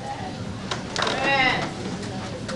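A crowd of adults calls out and sings loosely.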